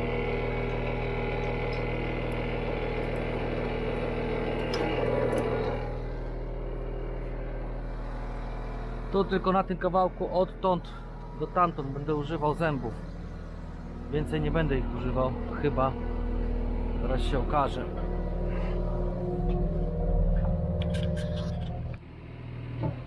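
A diesel engine idles nearby with a steady low hum.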